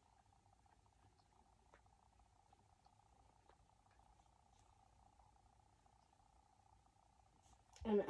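A boy softly rustles and shifts plush toys on a shelf.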